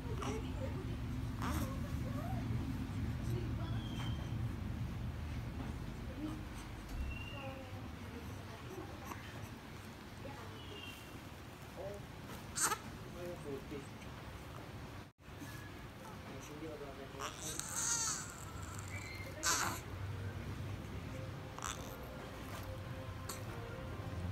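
A newborn baby cries and fusses close by.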